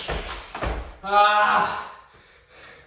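A young man lets out a loud, drawn-out cry.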